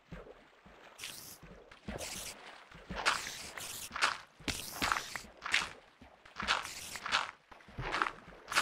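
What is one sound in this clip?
Gravel crunches in short bursts as it is dug out.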